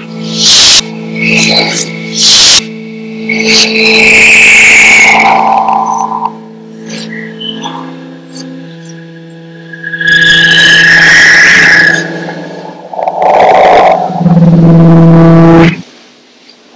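Harsh electronic noise and droning tones blare loudly in bursts.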